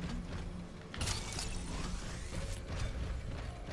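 An energy shield hums and crackles.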